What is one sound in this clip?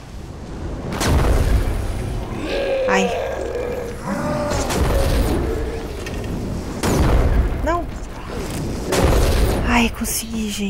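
A rocket launches with a loud rushing whoosh.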